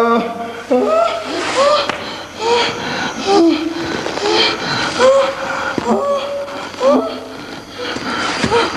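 A young man groans and cries out in pain close by.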